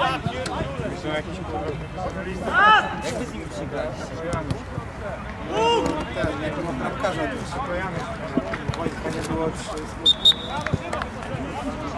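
Men shout across an outdoor pitch during a football game.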